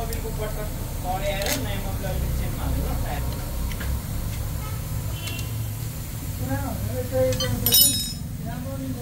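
A metal wrench clicks and scrapes against an engine bolt.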